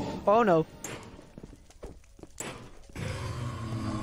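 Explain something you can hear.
A sword strikes a fiery creature with dull thuds.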